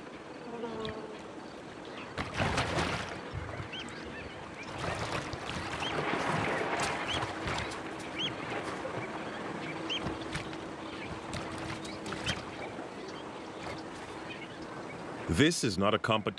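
A lion tears and chews at a carcass close by.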